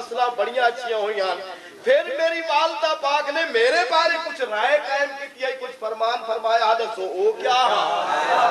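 A man speaks loudly and with passion.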